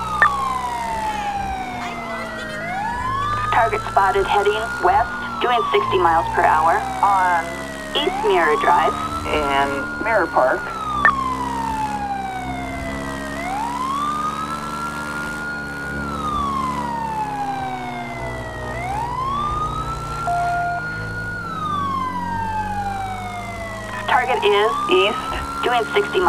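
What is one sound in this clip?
A siren wails close by, rising and falling in long, slow sweeps.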